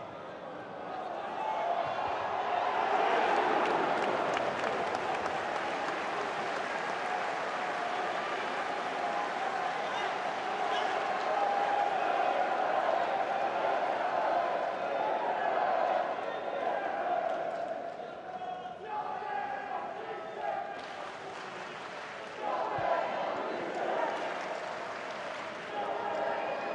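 A stadium crowd roars and cheers loudly.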